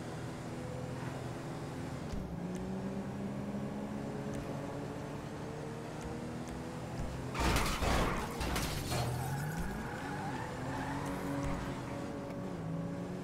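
A car engine drones and changes pitch as the car drives.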